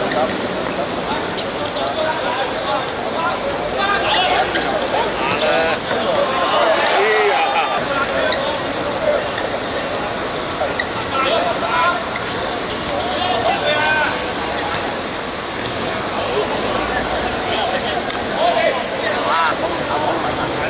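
A crowd of spectators murmurs in the background.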